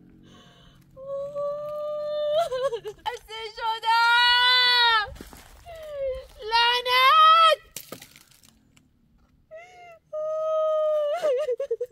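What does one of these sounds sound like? A woman sings loudly nearby in a mournful, wavering voice.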